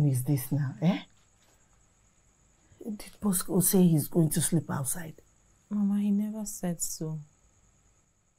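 An older woman speaks earnestly, close by.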